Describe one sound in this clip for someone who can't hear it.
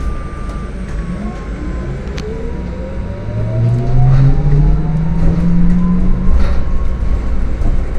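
A hybrid city bus pulls away, its electric motor whine rising in pitch.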